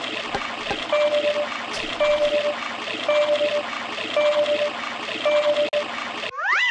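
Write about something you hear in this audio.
Short electronic chimes sound one after another.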